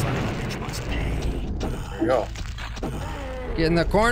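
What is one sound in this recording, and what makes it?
A pitchfork stabs into flesh with wet, squelching thuds.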